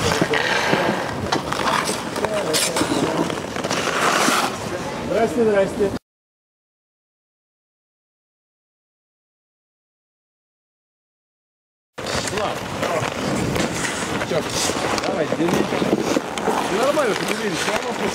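Ice skates scrape and hiss on ice.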